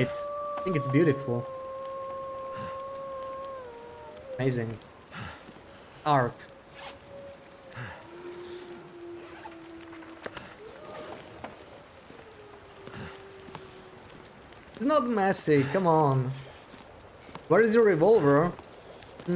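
A fire crackles in a fireplace.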